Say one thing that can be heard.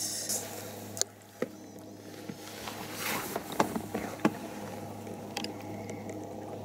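Small clicks sound as a fishing reel is handled.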